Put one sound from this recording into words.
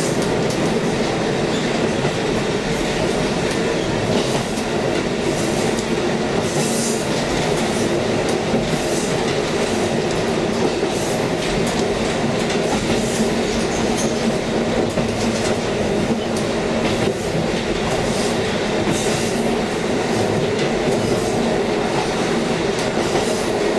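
A train rumbles steadily along the rails, heard from inside a carriage.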